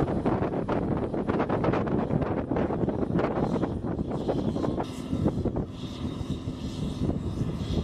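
A baler's engine hums as the baler rolls over a field.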